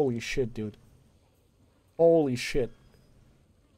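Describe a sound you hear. A young man speaks briefly into a close microphone with animation.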